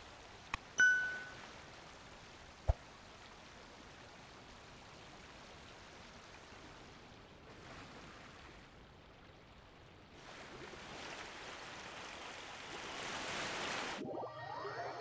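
A boat cuts through water with splashing.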